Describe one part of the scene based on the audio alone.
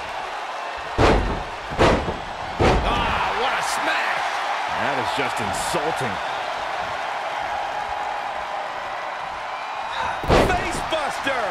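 Bodies slam hard onto a wrestling mat.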